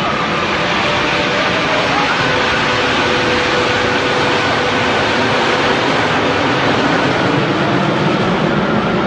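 A formation of jet planes roars steadily overhead.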